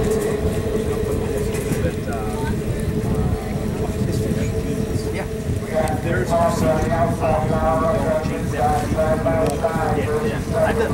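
Racing boat engines roar and whine steadily across the water.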